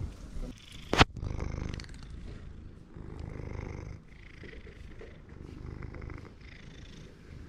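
A cat bumps and rubs against the microphone with a thud and rustling.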